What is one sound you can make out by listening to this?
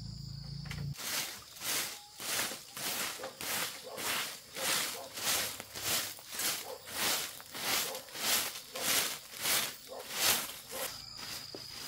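A broom sweeps a hard floor in quick, rhythmic strokes.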